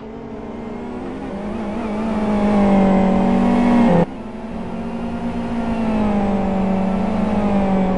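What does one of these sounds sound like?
A racing car engine roars, rising in pitch as it speeds up, then dropping suddenly at a gear change before climbing again.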